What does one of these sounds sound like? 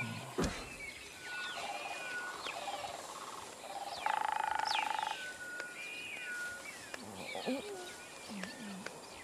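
An ape's footsteps rustle through grass.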